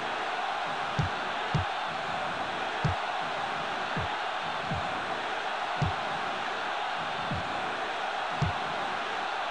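A ball is kicked with short dull thuds.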